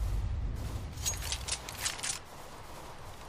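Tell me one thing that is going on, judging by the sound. A rifle is handled with metallic clicks.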